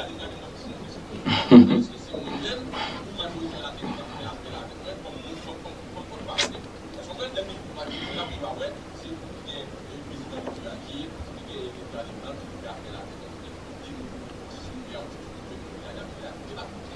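A young man speaks calmly and close into a microphone.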